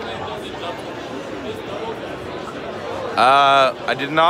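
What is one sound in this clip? A crowd murmurs in a large room.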